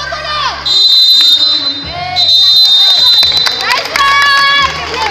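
Young women call out to each other during a game.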